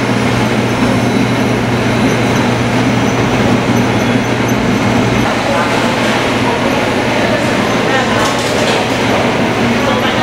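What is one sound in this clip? A wire-mesh conveyor belt rattles and hums as it runs.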